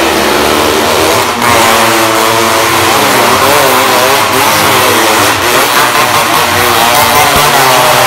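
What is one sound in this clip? Motorcycle engines roar and rev loudly inside an echoing arena.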